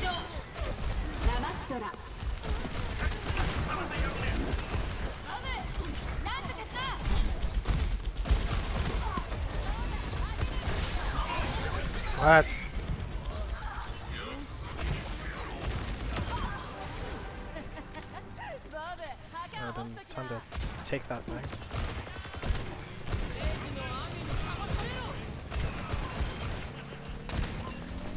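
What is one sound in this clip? Gunshots crack rapidly from a game.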